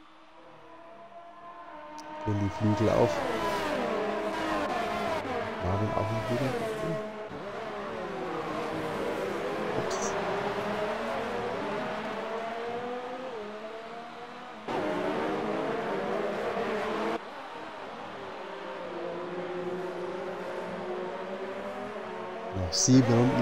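Racing car engines whine loudly, revving up and down as they speed past.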